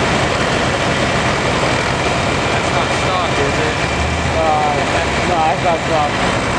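A tractor engine rumbles loudly as the tractor drives off.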